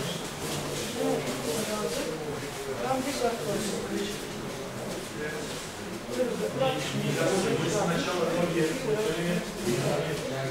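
A man speaks loudly in an echoing hall.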